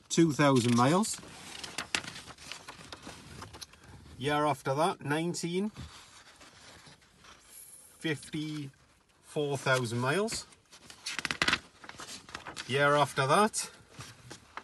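Paper pages rustle and flap as a booklet is leafed through.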